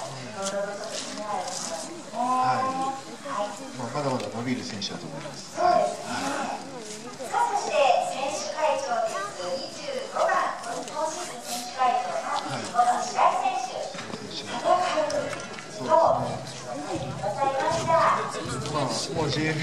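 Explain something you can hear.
A man talks calmly through a microphone and loudspeaker.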